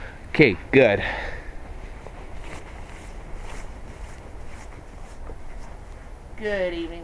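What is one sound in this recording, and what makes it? A young man calls out loudly close by.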